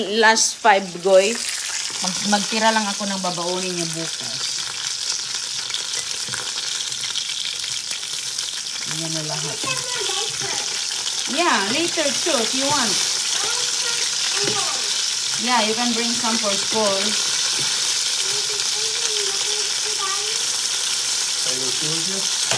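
Food sizzles and fries steadily in a pan.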